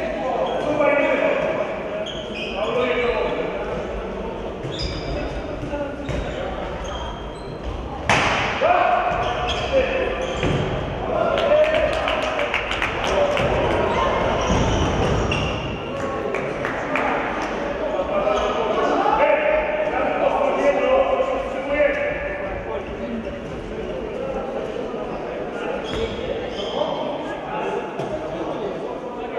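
A ball thuds on a hard floor in an echoing hall.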